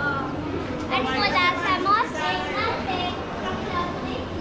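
A young girl speaks up nearby.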